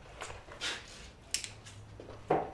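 A lighter clicks and sparks.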